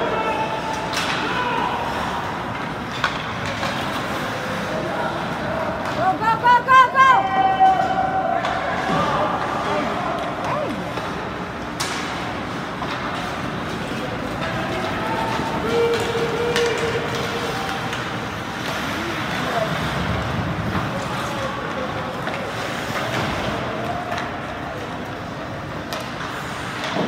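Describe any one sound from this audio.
Hockey sticks clack sharply against a puck now and then.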